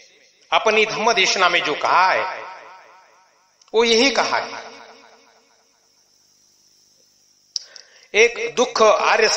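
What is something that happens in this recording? An elderly man speaks slowly and calmly into a microphone, with a long echo trailing his words.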